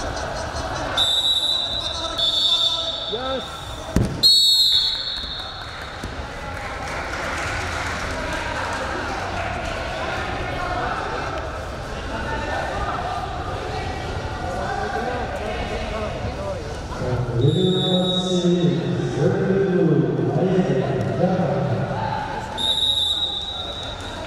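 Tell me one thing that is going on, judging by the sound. A referee blows short, shrill whistle blasts in a large echoing hall.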